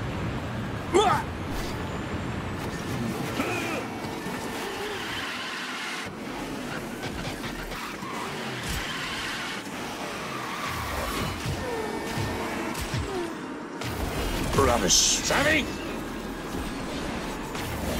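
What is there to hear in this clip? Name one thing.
A racing kart engine roars steadily.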